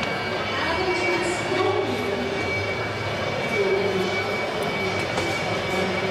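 Feet thud and shuffle on a padded mat.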